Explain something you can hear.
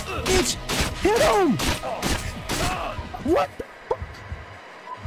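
A man shouts excitedly into a microphone, close by.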